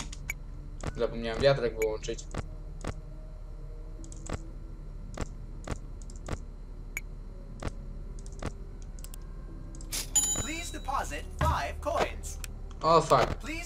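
A teenage boy talks into a headset microphone.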